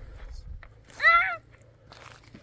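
A young child calls out briefly in a high voice.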